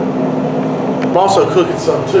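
A man talks close by, speaking casually.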